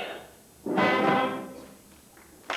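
A young man sings a loud, drawn-out note.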